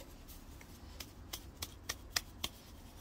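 Fingers tap and click against a ceramic pot.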